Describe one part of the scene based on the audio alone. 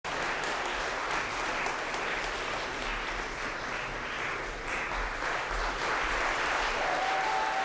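A percussion ensemble plays in a large, echoing hall.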